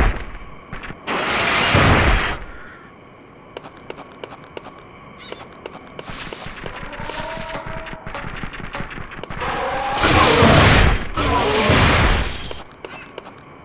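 An energy weapon fires with a loud, rushing blast.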